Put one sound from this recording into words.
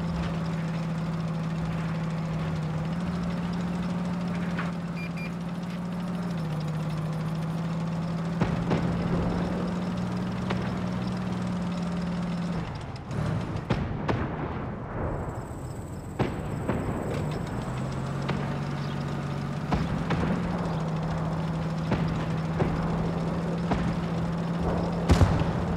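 Tank tracks clatter and squeak over the ground.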